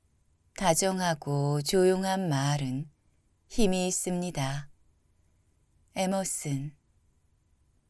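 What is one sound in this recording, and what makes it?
A man reads aloud calmly and closely into a microphone.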